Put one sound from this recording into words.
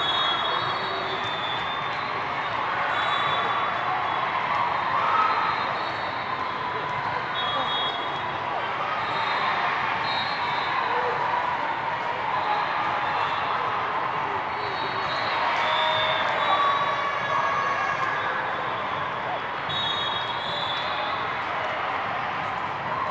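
The hall echoes loudly.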